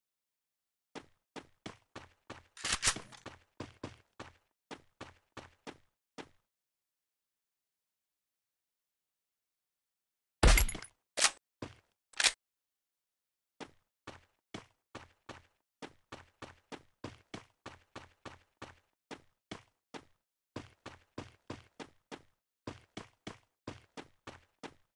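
Footsteps run over grass in a rapid, even rhythm.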